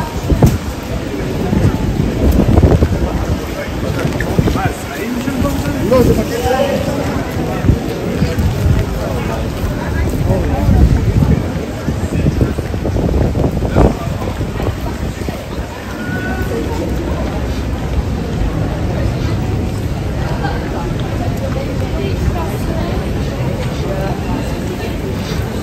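A busy pedestrian street murmurs with the voices of passers-by.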